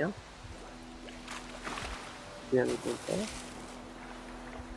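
Water splashes as someone wades in and starts to swim.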